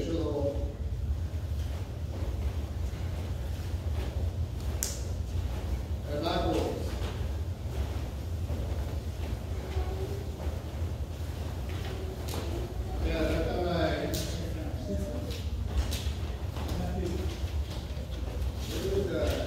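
An adult calls out counts to a class in a large echoing hall.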